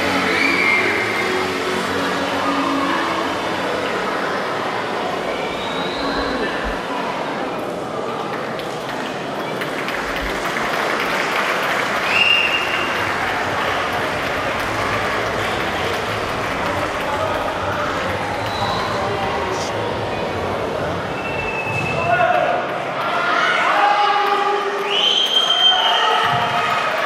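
A large crowd murmurs and chatters in an echoing hall.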